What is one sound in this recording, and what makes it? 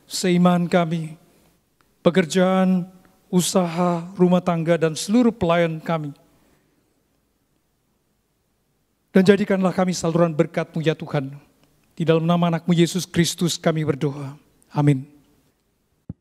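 A middle-aged man speaks slowly and solemnly into a microphone, pausing between phrases.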